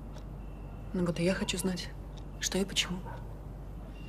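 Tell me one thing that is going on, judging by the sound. A woman speaks quietly and close by.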